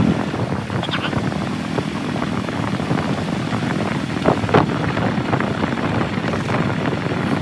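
A bus engine rumbles as the bus drives slowly away.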